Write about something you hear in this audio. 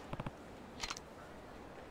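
A cat meows.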